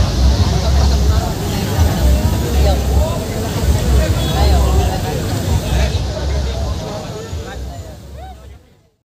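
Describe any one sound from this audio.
A crowd of people cheers and shouts.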